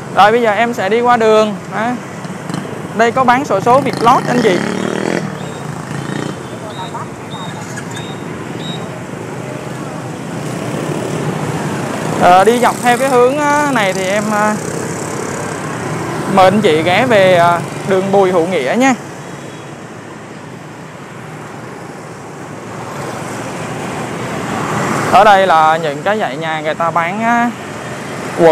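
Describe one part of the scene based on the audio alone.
Motorbike engines hum steadily as traffic passes on a street outdoors.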